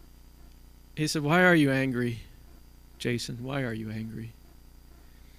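A man speaks into a microphone over a loudspeaker, in short phrases with pauses.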